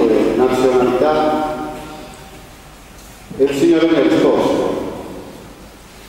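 A man speaks into a microphone over loudspeakers, his voice echoing in a large hall.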